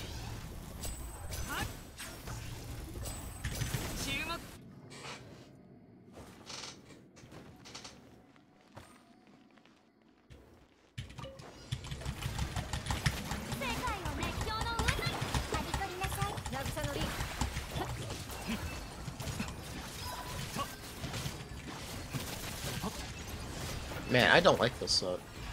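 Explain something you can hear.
Game combat effects crackle and burst.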